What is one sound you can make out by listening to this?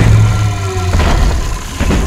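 Electricity crackles and zaps in a sharp burst.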